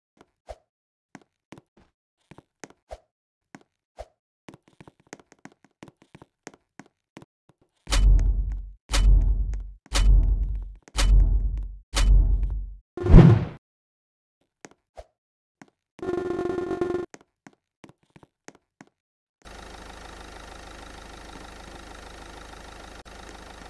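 Footsteps patter softly on the ground.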